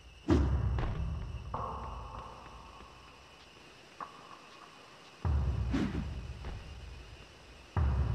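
Booming, crashing game sound effects play from a small speaker.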